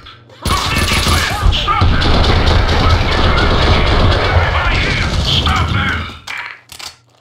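Gunfire roars and explodes loudly.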